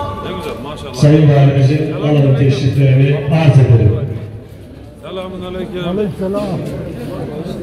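A man speaks loudly and close by.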